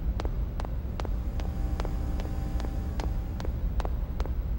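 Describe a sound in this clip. An energy beam hums.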